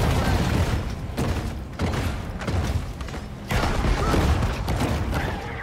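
A boat engine roars over splashing water.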